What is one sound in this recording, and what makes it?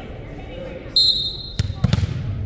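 A whistle blows sharply.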